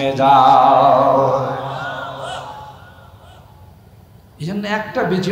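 An elderly man preaches loudly and with fervour into a microphone, heard through loudspeakers.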